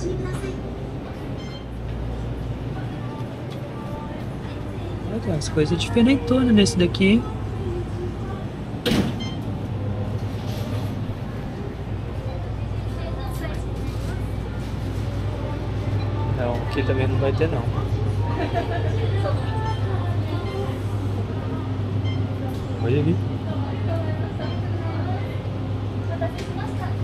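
Refrigerated display cases hum steadily.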